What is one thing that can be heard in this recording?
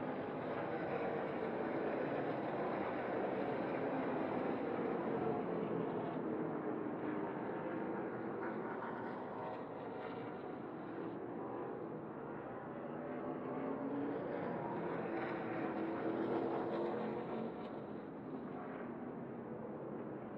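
Racing truck engines roar loudly, rising and falling in pitch as they shift gears.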